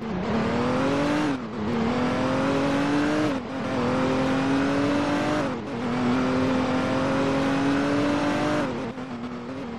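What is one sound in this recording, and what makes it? A car engine revs hard, rising in pitch and dropping as gears shift.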